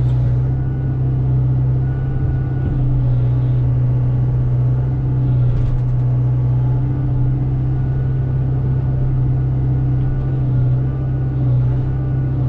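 A diesel engine hums steadily close by.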